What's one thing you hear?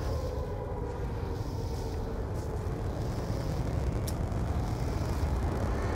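A deep explosion rumbles loudly.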